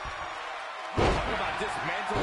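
A body slams onto a wrestling mat with a heavy thud.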